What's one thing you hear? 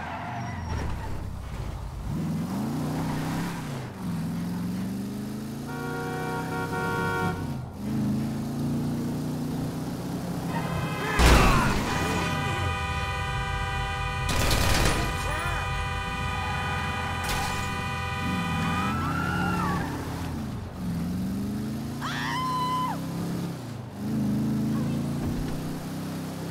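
A muscle car engine revs through the gears.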